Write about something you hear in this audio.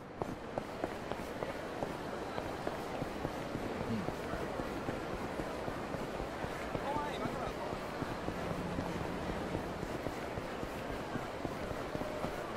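Footsteps patter quickly as a man runs along a street.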